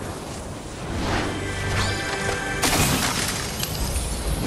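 A treasure chest hums with a shimmering, ringing tone.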